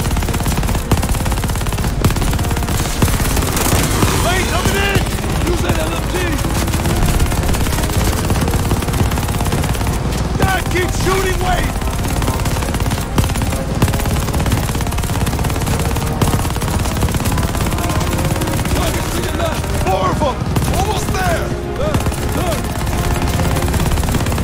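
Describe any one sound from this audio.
Tank engines rumble steadily.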